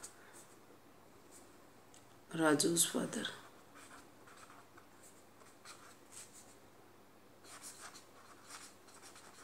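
A marker pen squeaks and scratches softly on paper.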